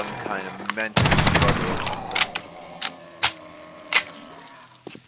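A gun fires a rapid burst of loud shots.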